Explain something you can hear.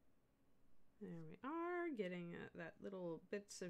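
A middle-aged woman speaks with animation into a microphone, close by.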